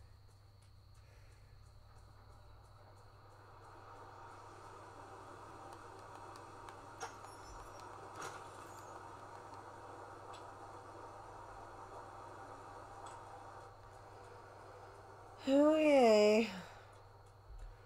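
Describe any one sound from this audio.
Game sound effects and music play quietly from a television's speakers.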